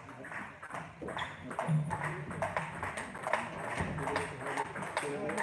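A table tennis ball clicks back and forth off paddles and table in an echoing hall.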